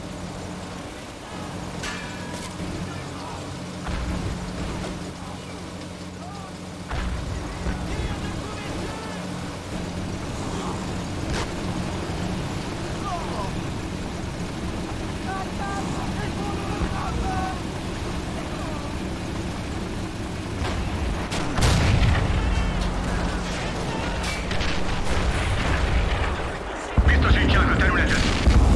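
Tank engines rumble and clank steadily.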